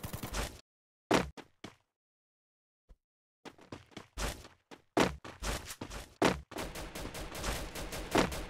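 Footsteps thud on grass as a character runs.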